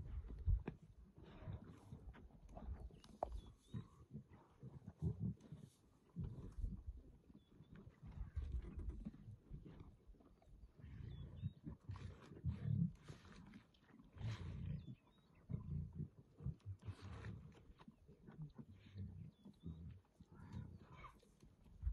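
Lions tear and chew at a carcass, growling low.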